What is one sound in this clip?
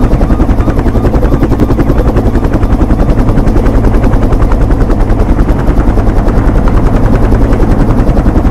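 Helicopter rotor blades thump rapidly and steadily.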